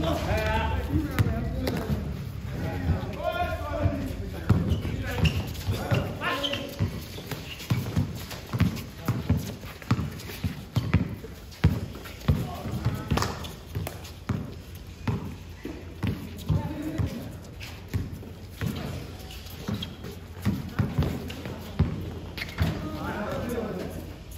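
A basketball bounces on a hard outdoor court.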